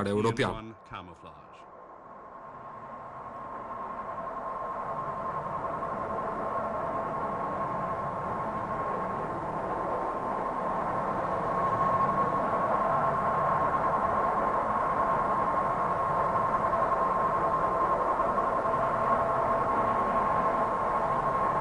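A large jet aircraft's engines roar steadily in flight, growing louder.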